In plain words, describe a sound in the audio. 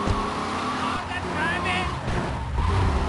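Car tyres screech on asphalt.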